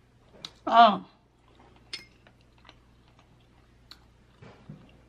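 A young woman chews food with soft wet smacking sounds.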